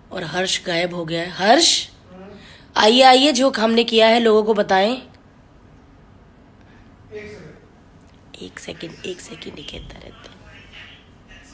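A woman speaks close to a phone microphone with animation.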